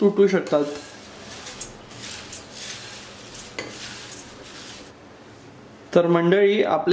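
A wooden spatula scrapes and rustles through dry flakes in a pan.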